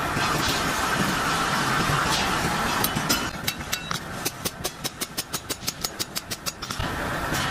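A hammer taps metal on an anvil.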